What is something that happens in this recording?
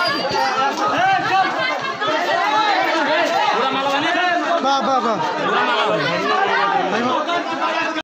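A crowd of men talks and shouts excitedly outdoors.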